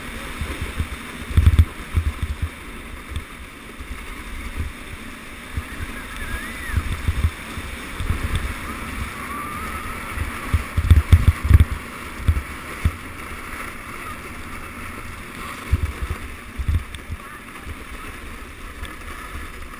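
A sled hisses and scrapes over packed snow.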